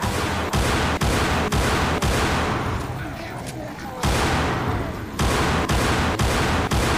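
Pistol shots ring out in a rapid, even rhythm.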